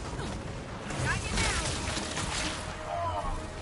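Electronic explosions burst and crackle.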